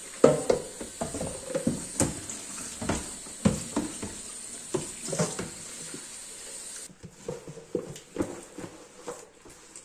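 A plastic container knocks and rattles against a metal sink.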